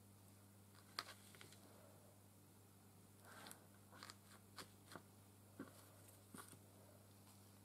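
A small knife scrapes and taps softly on paper.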